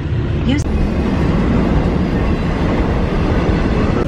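A freight train rumbles past on the tracks.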